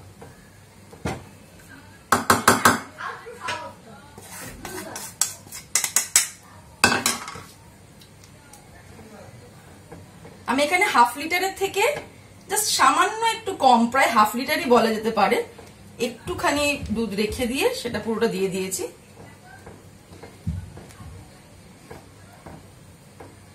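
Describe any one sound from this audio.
A spatula stirs and scrapes in a pan.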